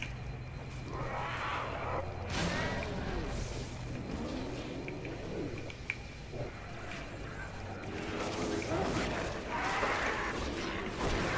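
An energy blade swooshes and crackles as it slashes.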